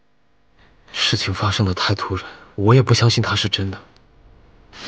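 A young man speaks softly and gently, close by.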